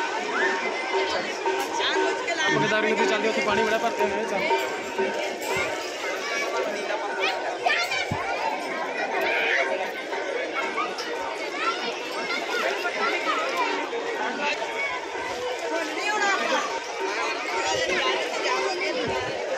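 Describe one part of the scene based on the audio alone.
A crowd of men and women chatter outdoors in an open space.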